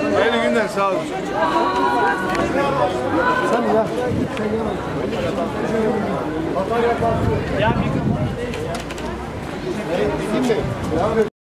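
A crowd of men and women talk and chatter close by, outdoors.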